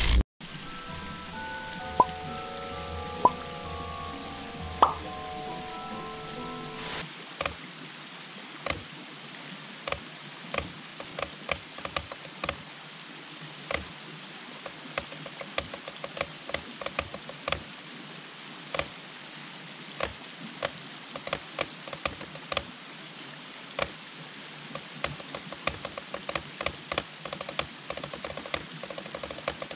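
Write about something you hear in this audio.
A shallow stream babbles over stones.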